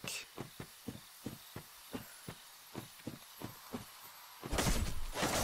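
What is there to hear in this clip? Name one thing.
Footsteps crunch steadily over grass and leaves.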